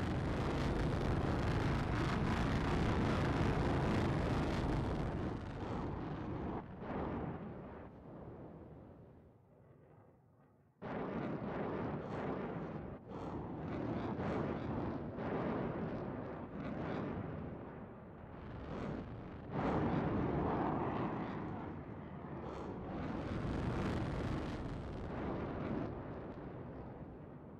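A spacecraft engine roars steadily.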